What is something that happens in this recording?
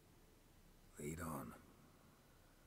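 A man answers briefly in a low, calm voice.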